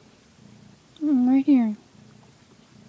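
A cat gives a loud meow.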